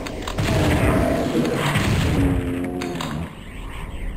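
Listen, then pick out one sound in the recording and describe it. A shotgun fires with a loud boom.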